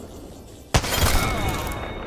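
A gun fires a single loud shot.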